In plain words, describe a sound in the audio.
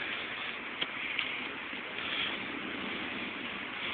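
A ball thumps as a toddler kicks it on grass.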